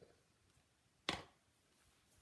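A plastic ink pad lid snaps shut.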